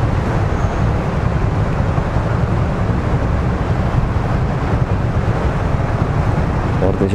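Traffic engines idle and hum nearby.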